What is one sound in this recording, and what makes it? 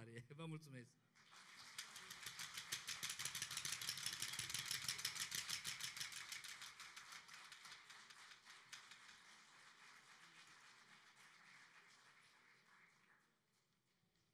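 A crowd applauds, then the clapping slowly fades.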